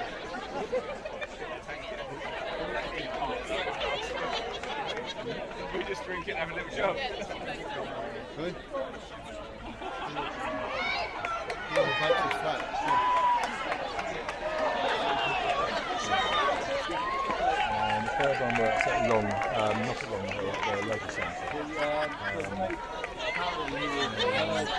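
A large outdoor crowd chatters all around.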